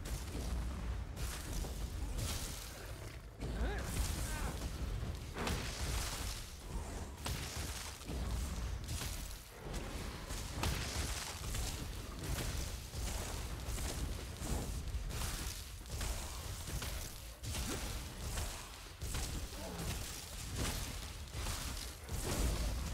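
Magic blasts whoosh and crackle in bursts.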